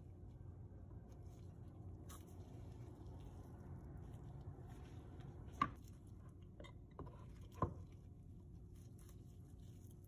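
A wire slices through a soap block.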